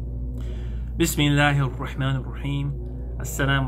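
A man speaks calmly and close to a microphone.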